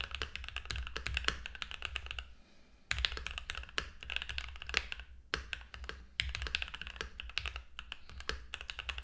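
Keys on a mechanical keyboard clack rapidly, with short pauses.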